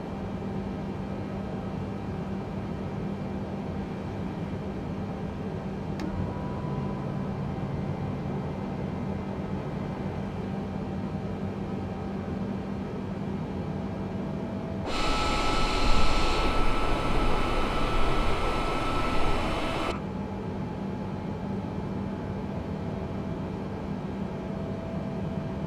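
A steady hum of jet engines fills a cockpit.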